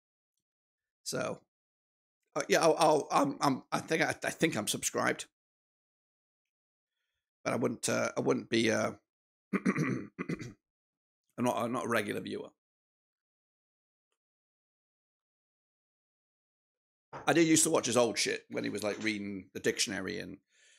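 A man talks with animation close to a microphone, in bursts with pauses.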